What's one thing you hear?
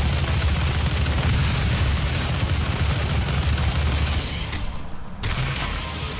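A monster roars and snarls up close.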